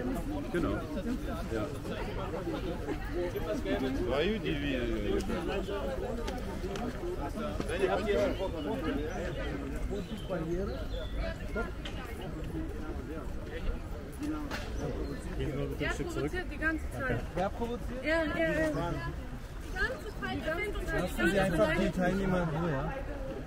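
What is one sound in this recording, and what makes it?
A crowd of men and women talks all around, outdoors.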